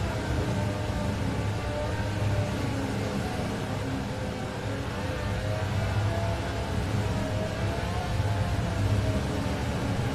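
Tyres hiss over packed snow.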